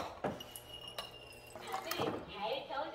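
Water streams from a dispenser into a glass jug.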